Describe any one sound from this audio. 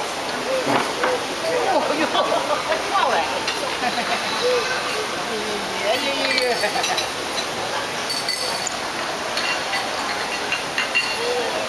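Cutlery and cups clink on plates.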